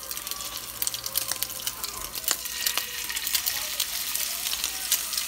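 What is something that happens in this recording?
Onions sizzle and crackle in a hot frying pan.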